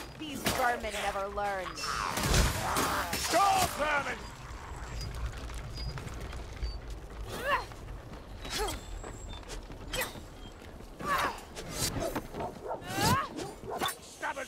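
Swords slash and strike with sharp metallic hits.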